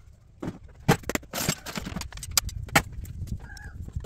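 Metal pieces clatter into a plastic tub.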